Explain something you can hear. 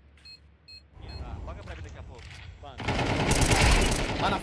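A young man speaks with animation into a headset microphone.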